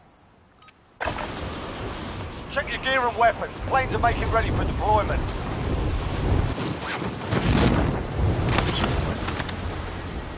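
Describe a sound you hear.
Wind rushes past during a skydiving freefall.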